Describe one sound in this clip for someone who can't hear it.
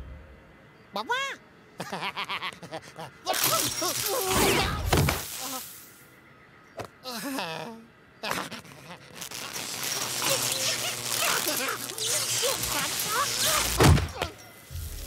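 A cartoon rabbit yells and screams shrilly.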